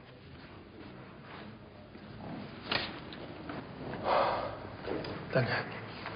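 A man sobs into a towel.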